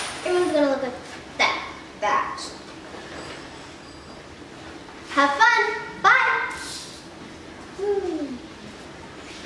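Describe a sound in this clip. A young girl speaks brightly and close by.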